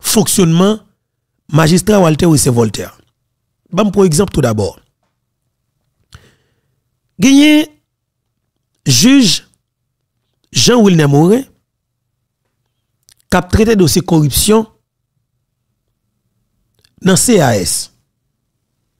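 A man speaks close into a microphone, in short bursts with pauses.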